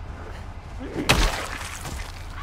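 A heavy blow thuds against a body.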